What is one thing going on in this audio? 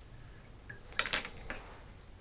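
Small scissors snip a thread.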